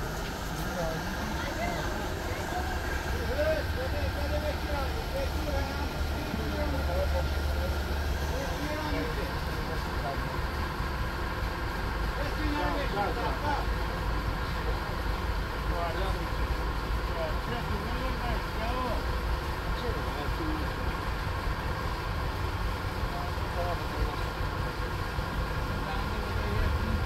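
Several men talk calmly nearby, outdoors.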